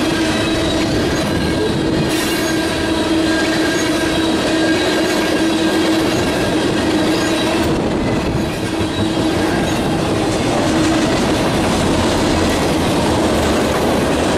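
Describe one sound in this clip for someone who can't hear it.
A long freight train rumbles past close by.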